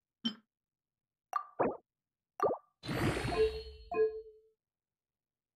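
Short electronic chimes and clicks sound from a game menu.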